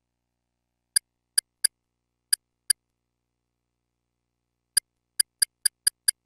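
Short electronic blips sound as a selection steps through a menu.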